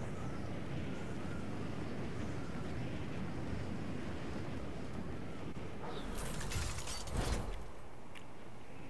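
Wind rushes steadily past a falling skydiver.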